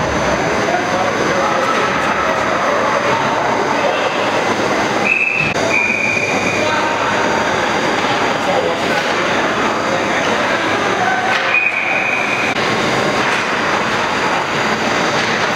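Hockey skates scrape and carve on ice in an echoing indoor rink.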